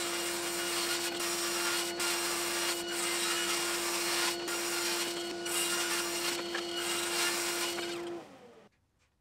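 A table saw runs with a steady whine as it rips wood.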